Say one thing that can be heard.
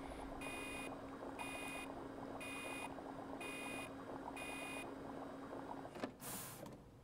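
Liquid bubbles and gurgles inside a machine.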